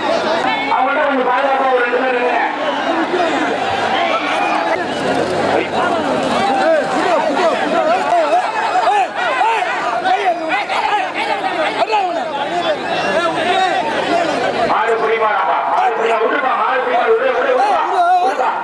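Men nearby shout excitedly.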